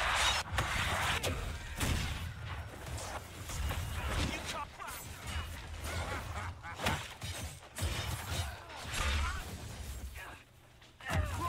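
Weapons clash and magic blasts boom in a fast fight.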